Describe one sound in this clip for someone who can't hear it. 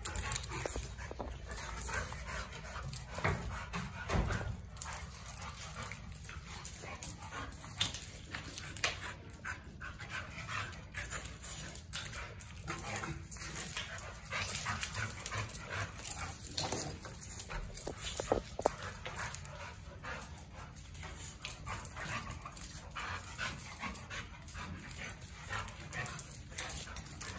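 Dog paws scrabble and thump on a hard floor.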